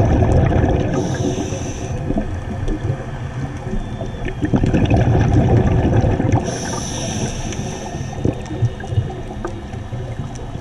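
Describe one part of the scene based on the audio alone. Water rumbles and swirls in a muffled underwater hush.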